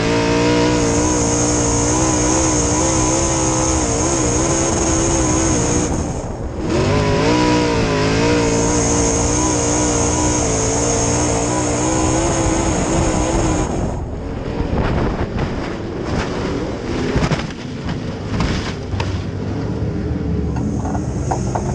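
A race car engine roars loudly up close, its pitch rising and falling.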